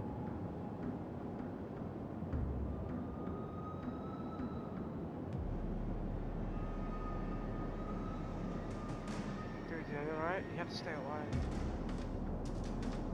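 Sea waves wash against a ship's hull.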